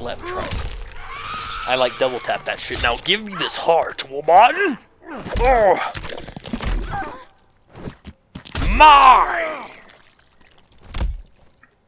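Flesh tears with wet, crunching squelches.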